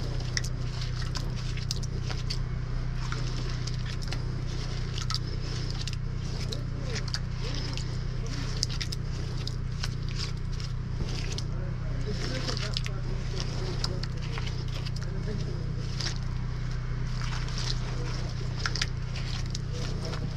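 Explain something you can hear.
Gloved hands scrape and rub wet mud and rock.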